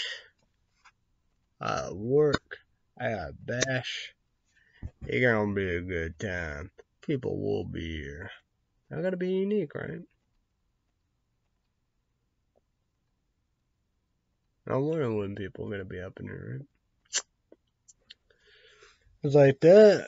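A young man talks casually and close by, with pauses.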